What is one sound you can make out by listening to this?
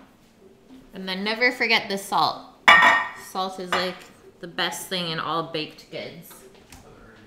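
A woman talks calmly and clearly nearby.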